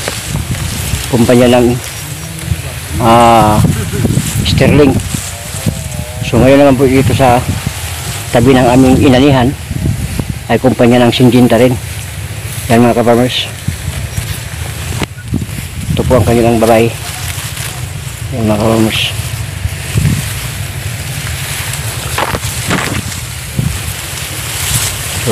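Wind rustles through tall grass outdoors.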